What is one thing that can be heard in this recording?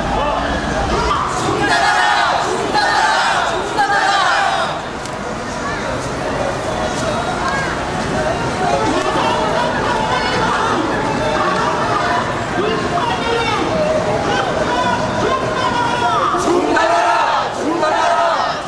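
A crowd of marchers chants and shouts together outdoors.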